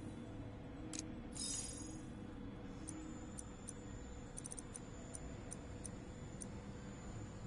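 Short electronic menu blips tick as selections move.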